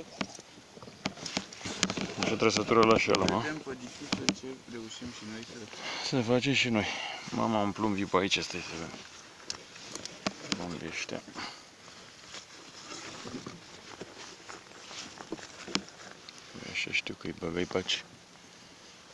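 Small waves lap against a boat on open water.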